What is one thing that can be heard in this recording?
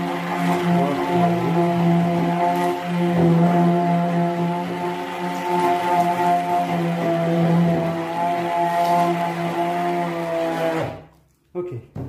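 An electric blender motor whirs steadily.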